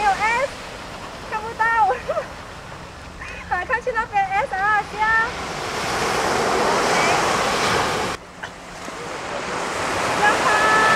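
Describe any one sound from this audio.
Small waves wash onto a sandy shore.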